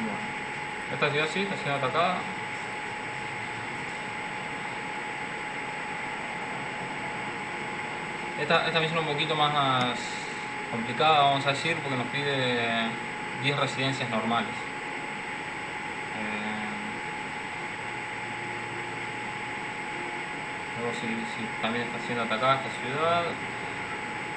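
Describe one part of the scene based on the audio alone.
A young man talks calmly into a nearby microphone, in short bursts with pauses.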